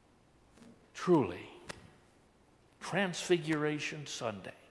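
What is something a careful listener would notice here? An elderly man speaks calmly and slowly into a microphone in an echoing room.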